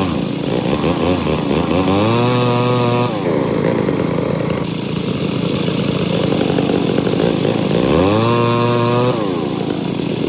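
A log cracks and splits apart.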